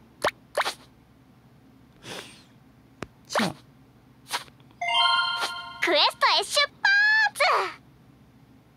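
Short game menu clicks and chimes sound.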